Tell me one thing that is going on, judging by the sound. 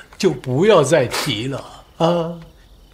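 A young man speaks in a choked, tearful voice.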